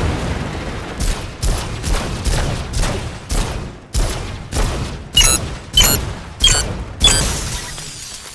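Heavy blows strike and smash metal in quick succession.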